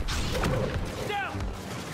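A blast booms and crackles.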